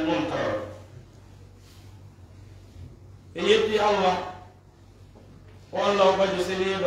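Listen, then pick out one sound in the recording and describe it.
An elderly man chants in a drawn-out voice through a microphone, with pauses.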